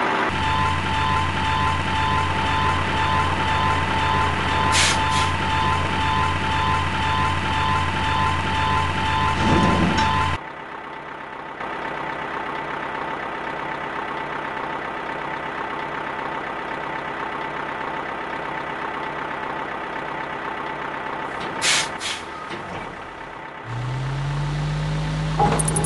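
A cartoon truck engine hums steadily.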